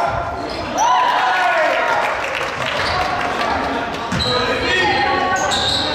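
A basketball bounces on a wooden floor with an echo.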